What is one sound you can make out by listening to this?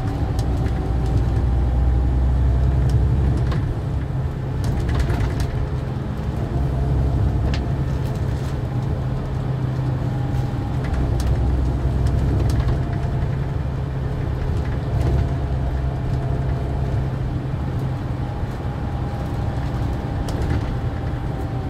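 A bus rattles and clicks as it rolls over the road.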